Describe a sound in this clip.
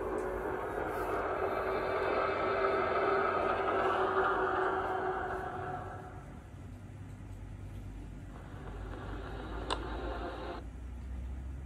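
Music plays softly from a small tablet speaker.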